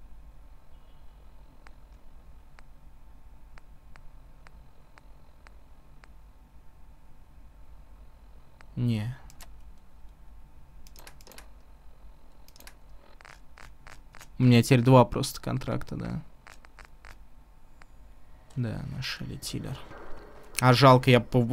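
Soft clicks sound as menu items are picked.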